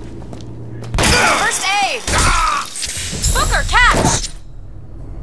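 Heavy blows thud in a close fight.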